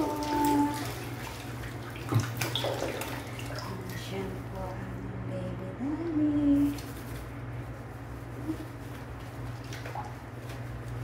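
Water runs from a tap into a basin.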